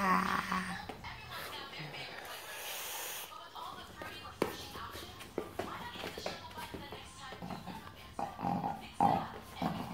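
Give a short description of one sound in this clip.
Small dogs scuffle and growl playfully.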